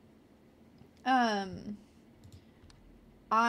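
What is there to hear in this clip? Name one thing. A young woman speaks with animation into a close microphone, her voice gliding down in pitch.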